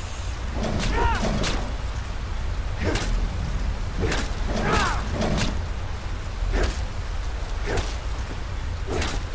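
Icy breath blasts and hisses in bursts.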